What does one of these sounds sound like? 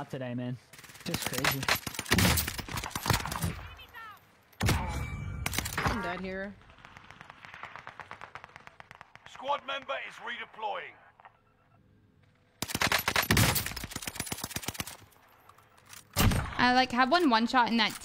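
Rifle shots crack loudly in bursts.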